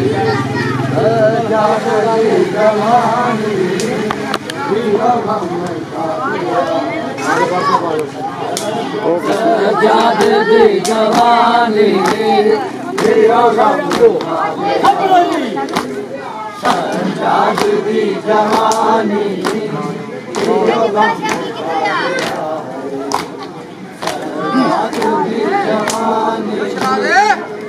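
A crowd of men chant loudly together outdoors.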